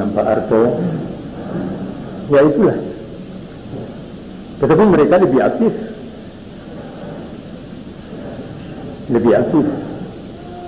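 An elderly man speaks slowly and forcefully into a microphone, in bursts with pauses, in an echoing hall.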